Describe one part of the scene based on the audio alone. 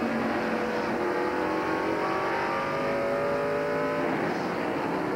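A race car engine roars loudly up close at steady high revs.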